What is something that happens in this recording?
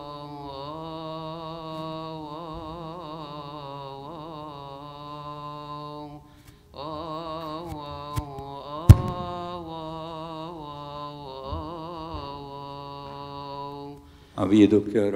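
A group of men chant a slow, drawn-out hymn together in a large echoing hall.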